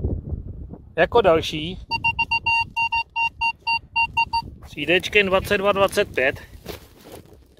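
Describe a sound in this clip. A metal detector beeps and warbles in high electronic tones.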